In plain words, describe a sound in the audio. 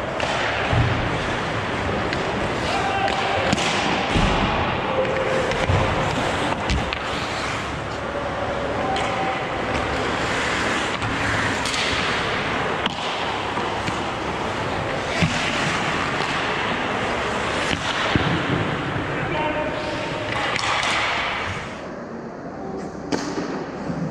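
Hockey sticks clack sharply against a puck and the ice.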